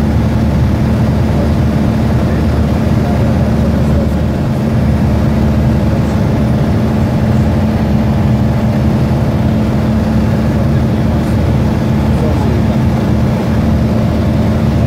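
An aircraft engine drones loudly and steadily from inside the cabin.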